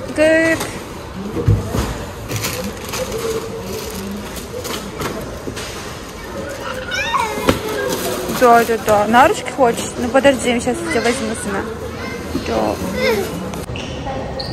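Cardboard boxes rustle and thump as a young man packs them.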